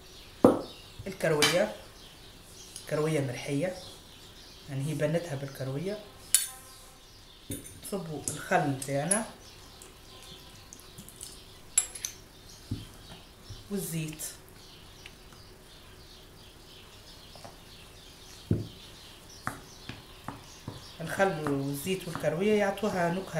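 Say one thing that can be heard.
A woman speaks calmly close by, in short phrases.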